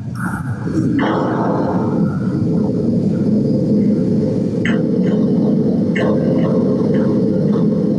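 Lightning crackles and rumbles loudly through a loudspeaker.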